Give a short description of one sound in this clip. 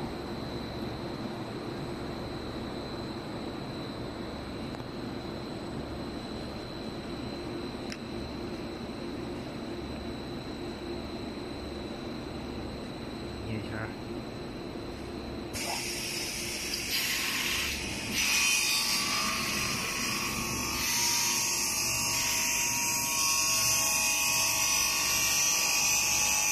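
An industrial machine hums steadily in a large echoing hall.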